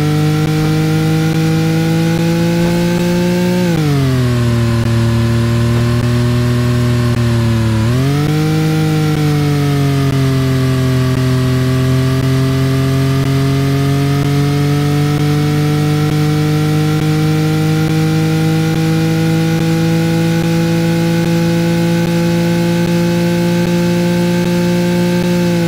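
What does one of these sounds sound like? A sports car engine roars steadily, dropping in pitch and then slowly rising as it speeds up.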